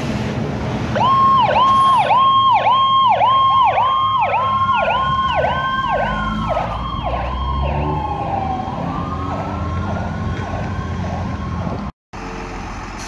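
An ambulance siren yelps rapidly and loudly.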